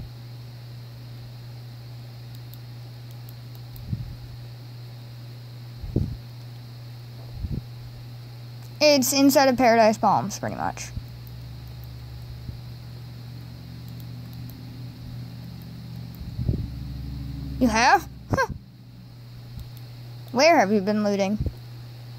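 A handheld game console plays game sounds through its small speaker.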